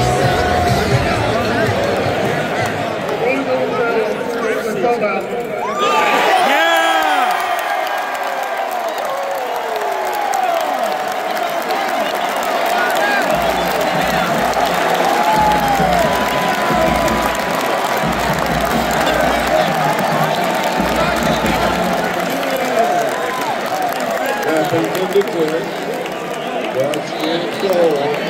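A huge stadium crowd roars and cheers throughout.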